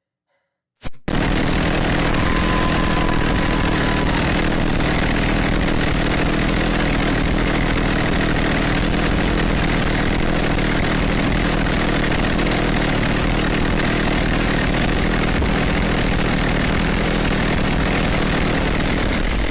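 A chainsaw roars loudly and steadily.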